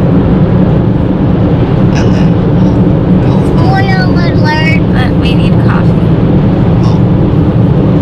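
A car's engine and road noise rumble steadily inside the cabin.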